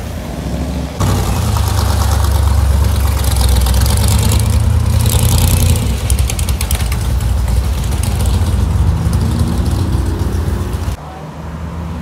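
A hot rod's engine revs and roars loudly as it drives by.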